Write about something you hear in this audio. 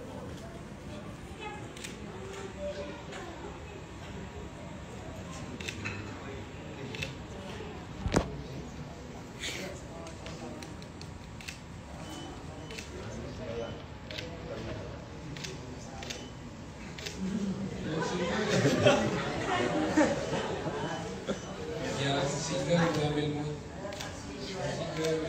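A crowd of guests chatters and laughs nearby.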